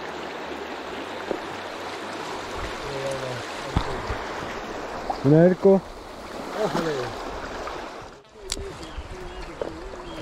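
A shallow river rushes steadily over stones outdoors.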